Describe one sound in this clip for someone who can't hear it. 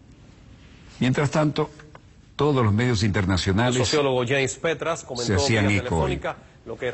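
A male news anchor speaks clearly and calmly into a microphone.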